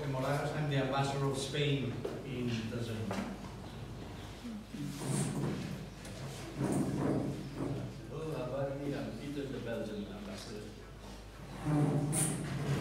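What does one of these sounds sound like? A man speaks calmly in a room.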